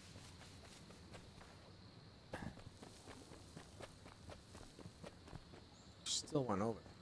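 Footsteps rustle quickly through grass and leaves.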